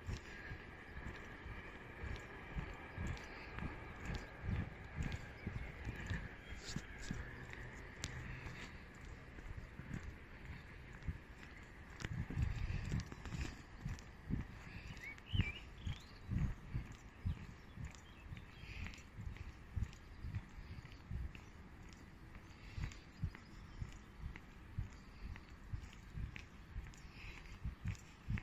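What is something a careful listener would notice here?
Footsteps crunch steadily along a paved path outdoors.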